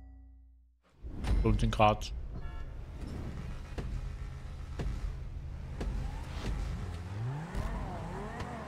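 A car engine roars and revs.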